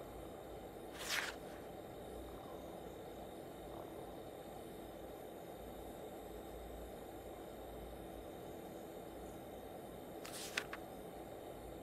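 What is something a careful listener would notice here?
A newspaper rustles as its pages turn.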